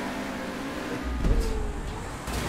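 A car crashes with a heavy thud.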